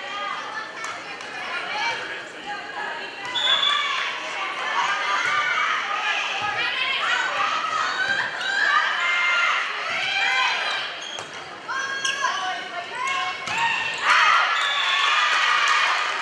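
Girls on a team shout and call out to each other in an echoing gym.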